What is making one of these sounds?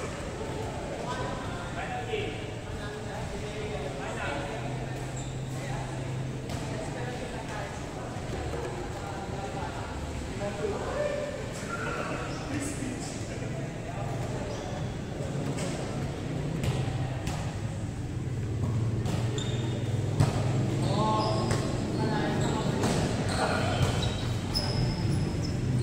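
Young men call out to each other in an echoing hall.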